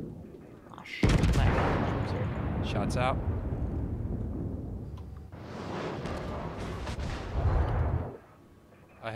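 Heavy naval guns boom with a deep rumble.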